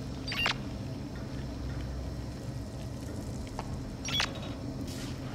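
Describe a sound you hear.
A handheld scanner gives a short electronic chirp.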